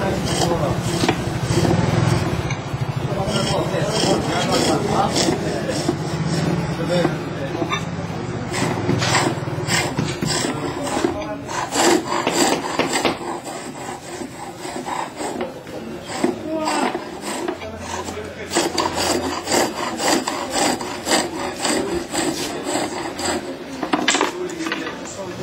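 A chisel scrapes and shaves wood spinning back and forth on a lathe.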